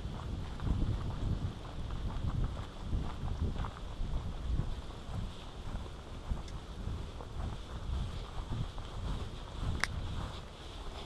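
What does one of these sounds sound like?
Wind blows outdoors in low, buffeting gusts.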